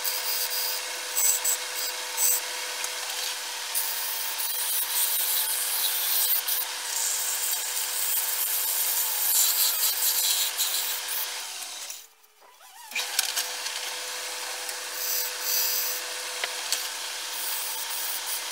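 A chisel scrapes and hisses against spinning wood.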